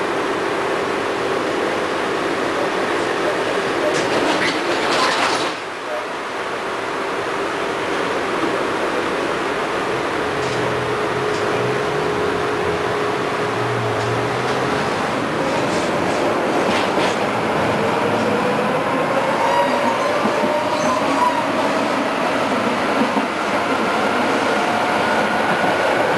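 A tram's wheels rumble and rattle on the rails.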